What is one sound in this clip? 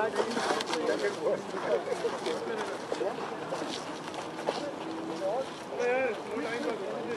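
Several men talk and call out outdoors at a distance.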